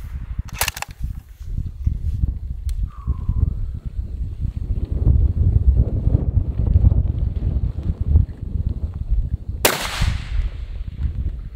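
A rifle fires a loud shot that echoes across open ground.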